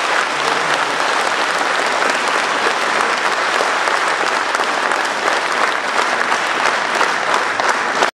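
An audience applauds steadily in a large hall.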